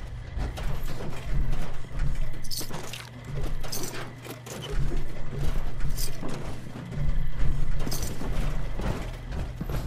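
Heavy metal footsteps thud on a hard floor.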